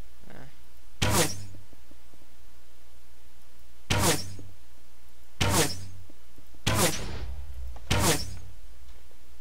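An arrow whooshes from a bow again and again.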